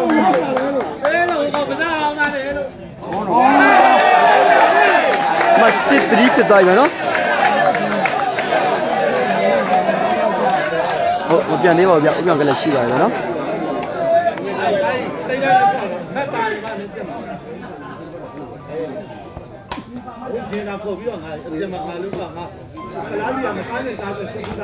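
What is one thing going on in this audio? A large crowd chatters and shouts loudly outdoors.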